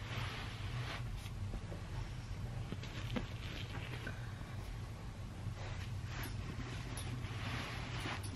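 A boot thuds softly on carpet.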